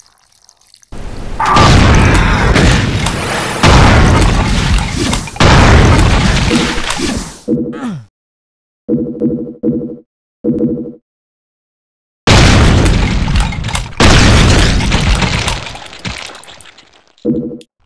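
A shotgun fires repeatedly in loud, booming blasts.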